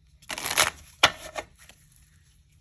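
Playing cards tap and slide together as a deck is squared up.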